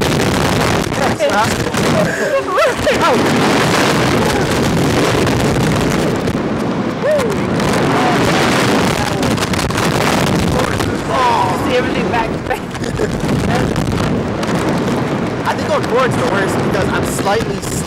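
A young woman screams and laughs.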